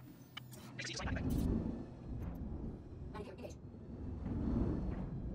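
A spaceship engine rumbles deeply.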